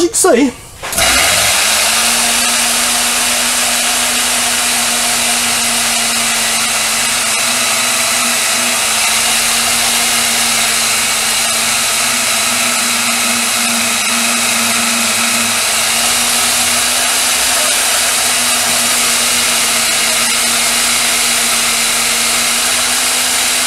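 A band saw starts up and runs with a steady hum and hiss.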